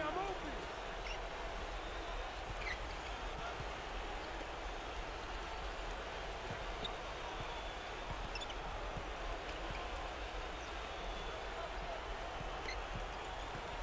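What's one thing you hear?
Sneakers squeak sharply on a hardwood court now and then.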